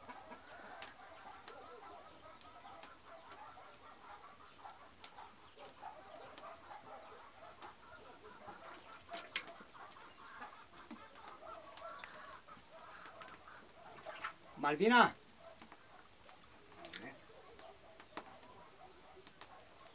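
Liquid trickles from a hose into a plastic barrel.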